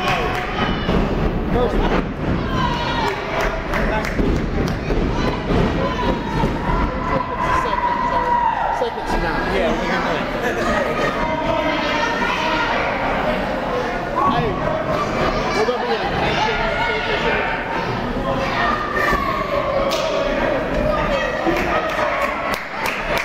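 A crowd chatters and shouts in a large echoing hall.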